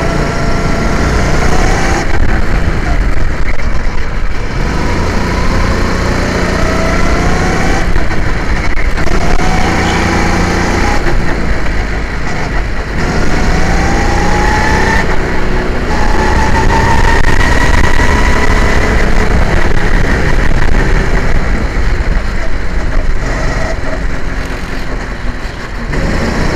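A small kart engine revs loudly close by, its pitch rising and falling.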